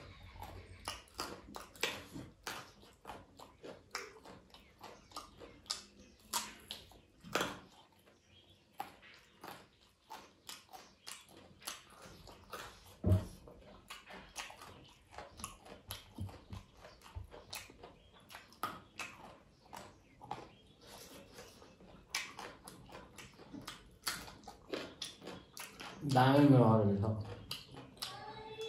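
A man chews food with wet, smacking mouth sounds close to a microphone.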